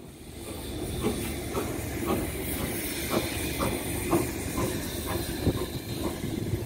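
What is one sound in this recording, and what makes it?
A steam locomotive chuffs in steady, rhythmic puffs.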